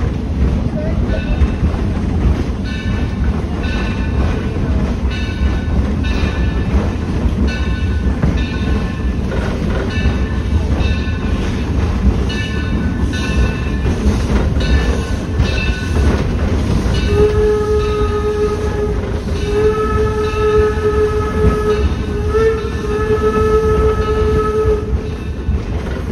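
A train rumbles and clatters along the rails close by.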